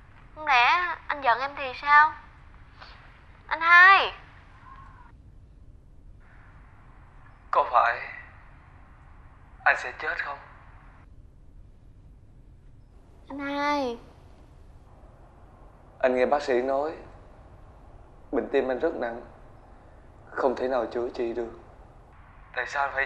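A young man speaks emotionally, close by.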